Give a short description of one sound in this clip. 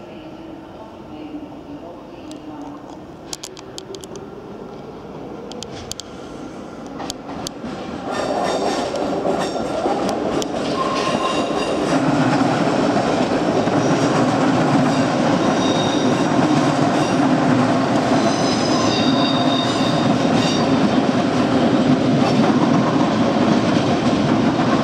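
A train rumbles along the tracks, growing louder as it picks up speed.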